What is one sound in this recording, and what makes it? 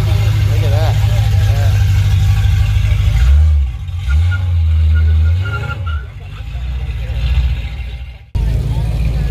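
A car engine idles with a deep, rumbling burble close by.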